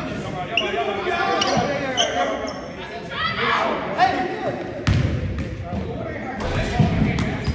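Sneakers squeak on the court floor.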